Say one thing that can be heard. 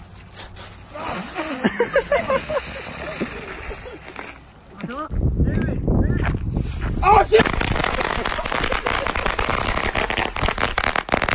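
Young men laugh and shout excitedly nearby.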